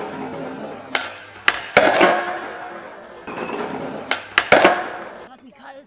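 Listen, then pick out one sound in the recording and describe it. A skateboard clacks sharply as it pops and lands.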